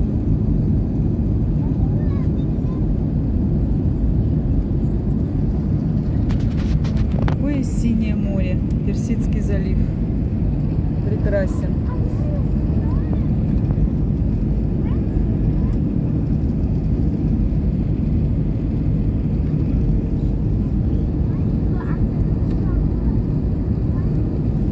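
A jet engine roars steadily inside an airplane cabin in flight.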